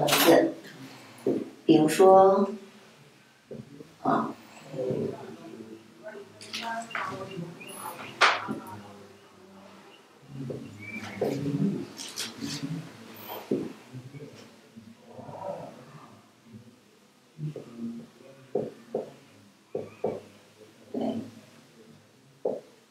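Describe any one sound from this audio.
A young woman speaks calmly nearby.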